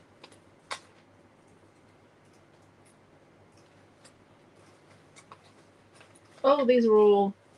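Small paper pieces rustle and tick softly as they are handled.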